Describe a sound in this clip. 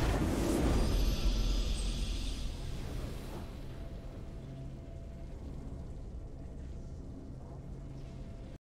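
A triumphant musical fanfare swells and then fades.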